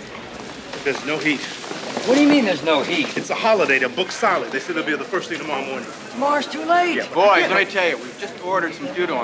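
Men talk with each other up close.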